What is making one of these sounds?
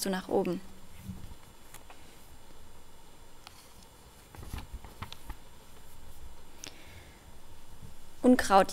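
A young woman reads aloud calmly into a microphone.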